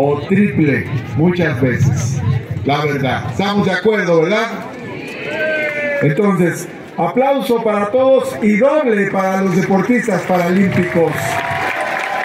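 A man speaks with animation through a microphone and loudspeakers outdoors.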